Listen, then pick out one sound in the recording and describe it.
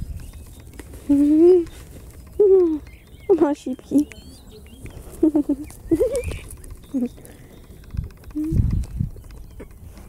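Goats bleat close by, in short wavering calls.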